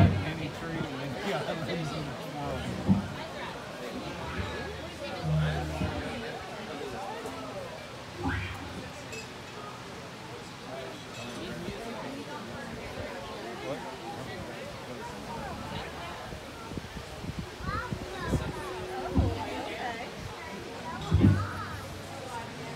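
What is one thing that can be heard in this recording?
A crowd of people chatter outdoors at night.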